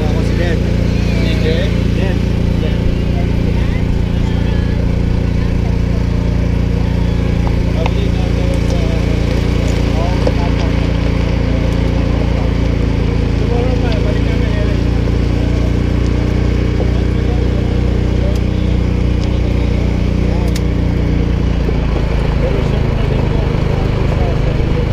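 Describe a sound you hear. A utility vehicle engine hums steadily.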